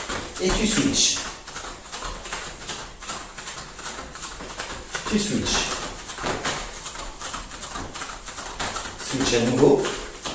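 Bare feet patter rhythmically on a hard floor.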